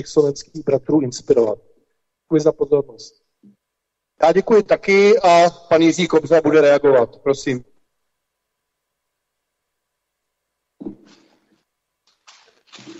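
A man speaks steadily into a microphone, pausing between phrases.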